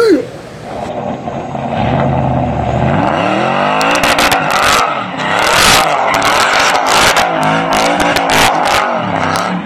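A truck engine revs hard.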